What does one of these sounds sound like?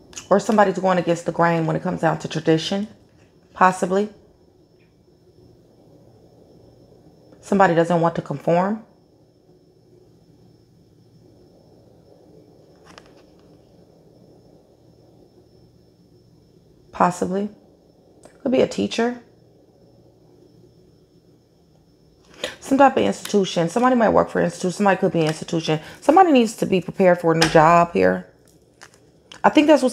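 A woman speaks calmly and closely into a microphone, in bursts with pauses.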